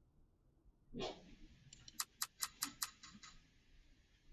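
A quick electronic jingle ticks rapidly and rings out.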